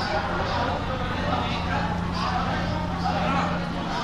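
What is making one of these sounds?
A crowd of men and women chatter nearby in an echoing hall.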